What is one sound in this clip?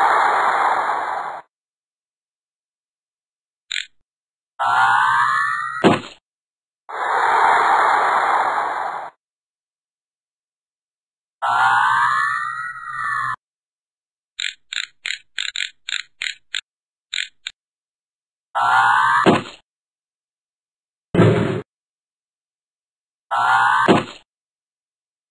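Short electronic game sound effects play in bursts, some with quick rising and falling tones.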